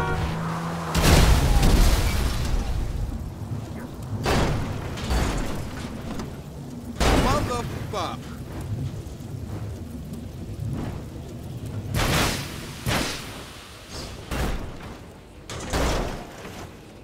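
A car crashes and tumbles with loud metal thuds.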